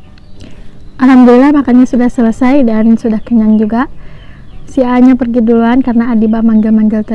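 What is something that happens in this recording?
A young woman speaks with animation, close to the microphone.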